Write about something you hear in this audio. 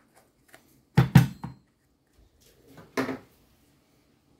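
A metal coffee holder knocks against a hard surface.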